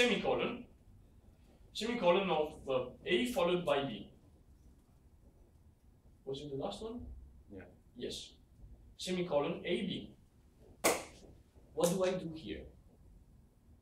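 A man speaks calmly with pauses, explaining something.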